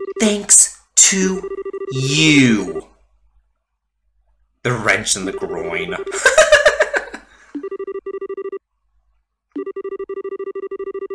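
A rapid series of soft electronic blips chatters steadily.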